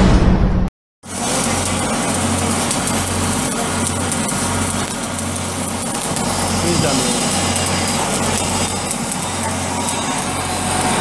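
An electric arc welder crackles and hisses steadily.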